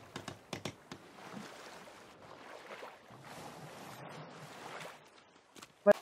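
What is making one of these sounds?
Water sloshes and bubbles as a swimmer moves through it.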